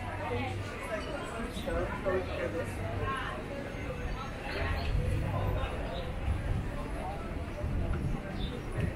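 Several women chat as they walk nearby.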